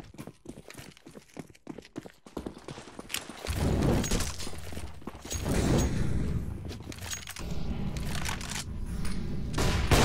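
Footsteps patter quickly on hard ground.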